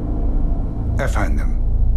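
A middle-aged man speaks calmly and seriously, close by.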